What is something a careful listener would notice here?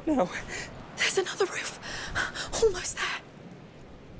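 A boy calls out urgently and close.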